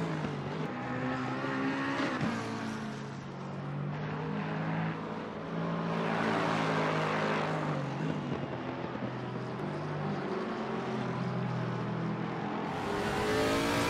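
A racing car engine roars past, rising and falling in pitch as it shifts gears.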